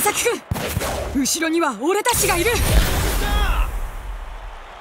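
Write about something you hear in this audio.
A ball is struck hard with a loud rushing whoosh.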